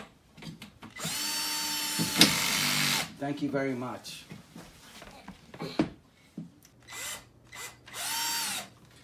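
An electric drill whirs in short bursts, its motor rising and falling in pitch.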